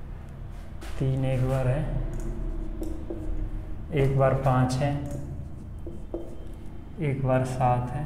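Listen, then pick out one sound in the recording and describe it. A man explains calmly and clearly, close by.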